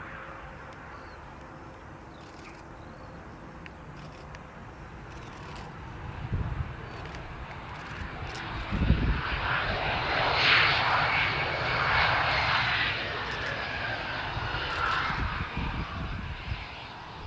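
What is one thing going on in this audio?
A jet engine roars loudly as an airliner rolls past on a runway.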